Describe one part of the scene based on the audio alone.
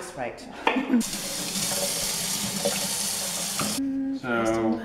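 Tap water runs into a metal bowl.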